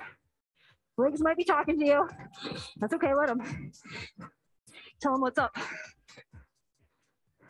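A woman talks with energy, close by.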